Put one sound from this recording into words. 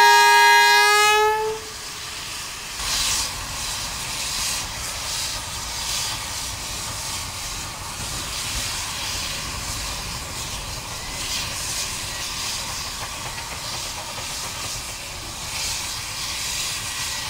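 Steam hisses steadily outdoors.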